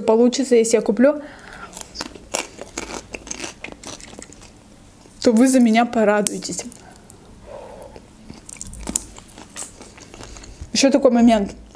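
A young woman speaks calmly, close to a microphone.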